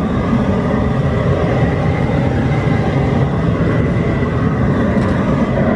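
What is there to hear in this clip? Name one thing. A metal lid scrapes and clanks on a steel pot.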